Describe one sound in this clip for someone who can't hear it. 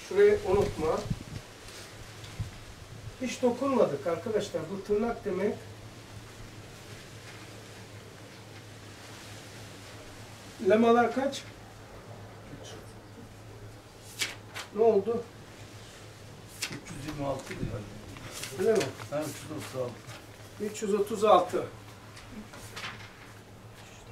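An elderly man speaks calmly, pausing often.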